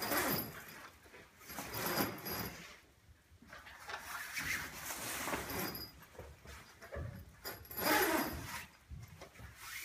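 Tent fabric rustles as it is unrolled.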